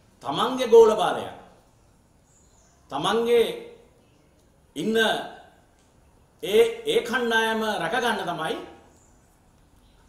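A middle-aged man speaks firmly into microphones close by, in short bursts with pauses.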